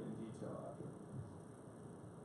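A man speaks calmly into a microphone.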